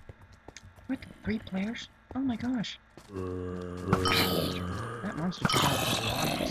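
Zombies groan nearby.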